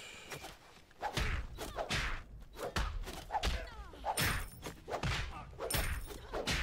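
Weapon swings whoosh and strike in a video game fight.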